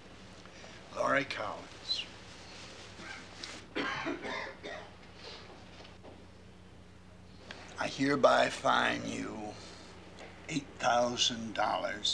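An elderly man speaks firmly and deliberately.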